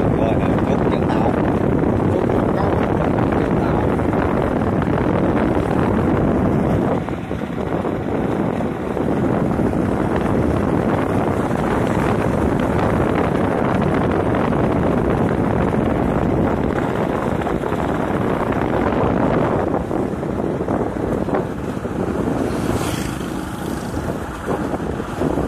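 A motorcycle engine drones steadily while riding along a road.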